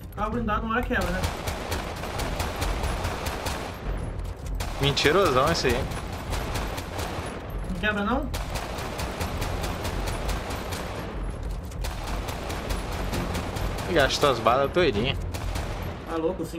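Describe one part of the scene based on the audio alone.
A pistol fires rapid shots again and again.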